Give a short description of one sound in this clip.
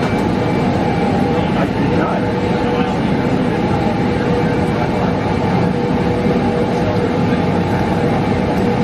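A jet engine roars steadily close by as an airliner taxis.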